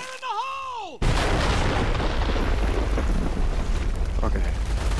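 A loud explosion booms close by and rumbles on.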